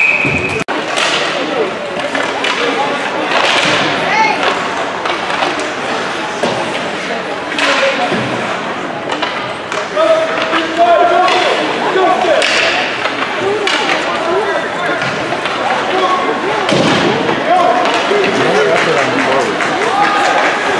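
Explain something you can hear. Young players and onlookers shout in a large echoing rink.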